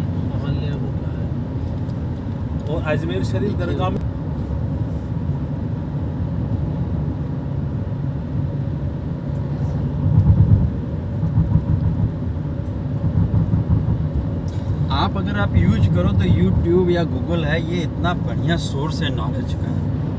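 A vehicle rumbles steadily as it drives along a road.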